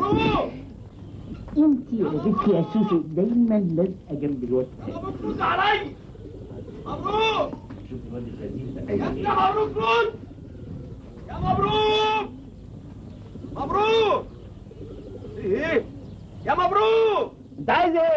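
A goose honks loudly again and again.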